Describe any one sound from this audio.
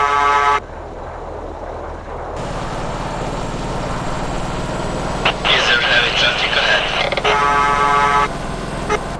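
A truck engine hums and slowly revs higher as it speeds up.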